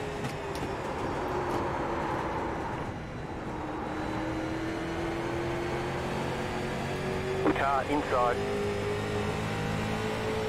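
A race car engine drones steadily, its pitch slowly shifting.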